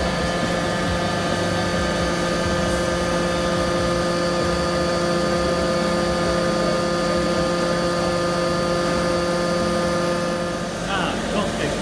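A hydraulic machine hums steadily.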